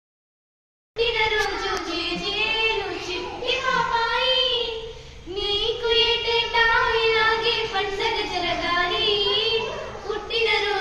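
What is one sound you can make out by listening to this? Teenage girls sing together close by.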